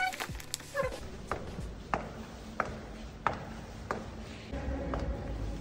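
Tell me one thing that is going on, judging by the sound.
Footsteps tap on hard stairs.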